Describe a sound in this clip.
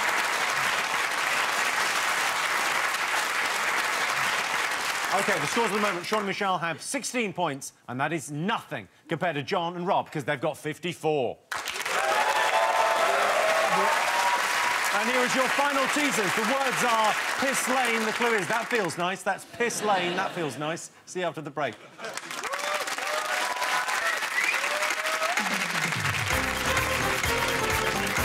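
A large audience applauds and cheers loudly.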